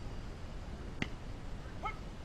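A bat cracks against a ball once.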